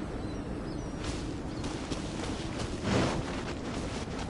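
Footsteps crunch quickly through snow and grass.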